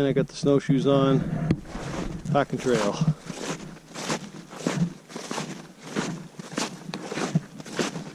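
Snowshoes crunch on snow in steady footsteps.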